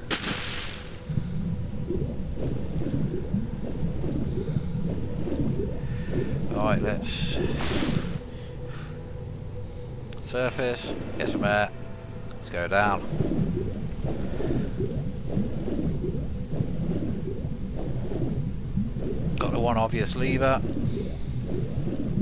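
Water rumbles and gurgles in a low steady swirl.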